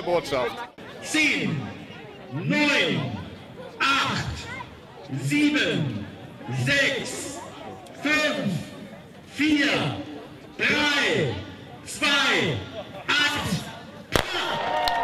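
A crowd of children and adults shouts a countdown together.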